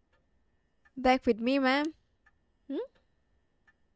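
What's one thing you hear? A young woman speaks briefly and with animation into a microphone.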